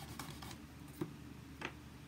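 A small acrylic block taps down on a hard surface.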